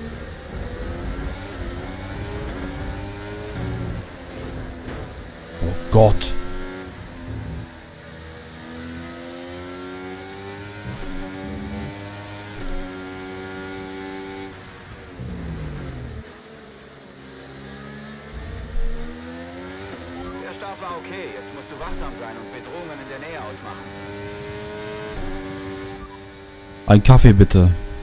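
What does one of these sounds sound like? A racing car engine whines steadily, rising and falling in pitch as gears change.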